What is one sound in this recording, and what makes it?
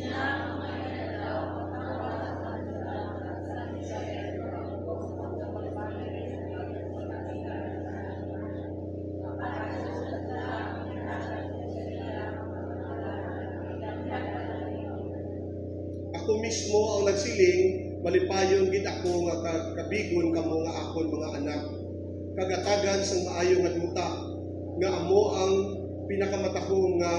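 A man speaks steadily into a microphone, heard through a loudspeaker in an echoing room.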